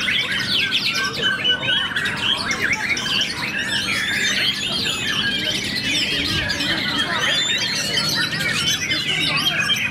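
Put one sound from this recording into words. A white-rumped shama sings a rich, varied whistling song.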